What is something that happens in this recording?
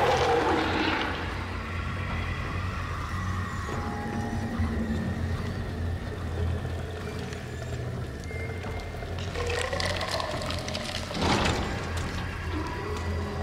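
Footsteps tap on a metal walkway.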